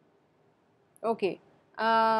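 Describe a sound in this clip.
A young woman speaks calmly into a close microphone.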